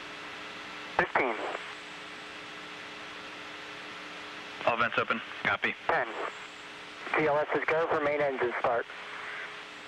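A man speaks calmly, heard through a headset.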